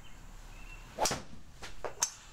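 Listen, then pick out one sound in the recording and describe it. A golf club strikes a ball with a sharp smack.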